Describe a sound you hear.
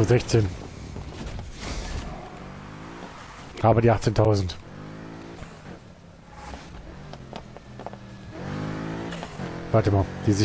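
A car exhaust pops and crackles with backfires.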